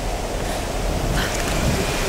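A waterfall rushes and roars nearby.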